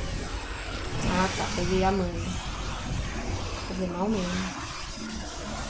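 A young woman talks into a nearby microphone.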